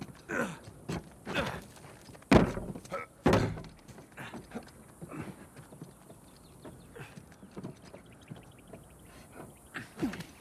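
Footsteps run across stone paving.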